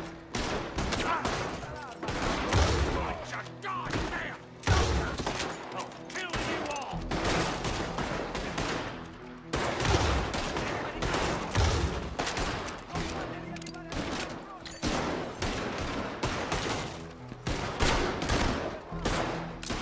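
Gunshots ring out repeatedly in a reverberant room.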